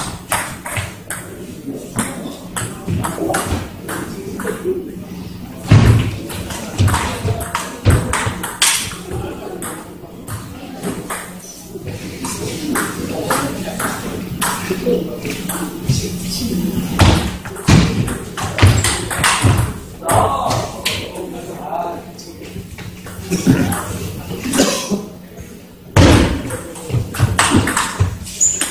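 A ball bounces with sharp taps on a table.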